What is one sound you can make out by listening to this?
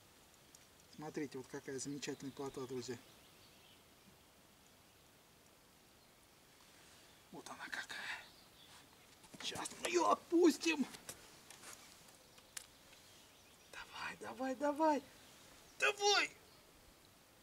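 An elderly man talks calmly, close by.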